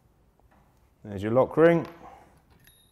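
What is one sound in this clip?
A metal lockring creaks and squeaks as a tool turns it.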